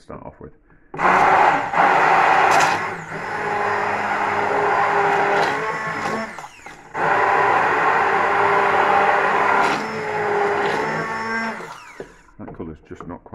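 A hand blender whirs loudly as it blends liquid in a pot.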